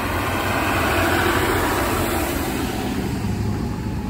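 A large vehicle's engine rumbles close by and passes.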